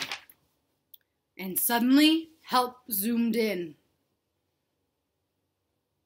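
Paper rustles as a book page is turned.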